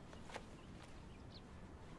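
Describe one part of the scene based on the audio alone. Fabric rustles as a young woman shifts her position.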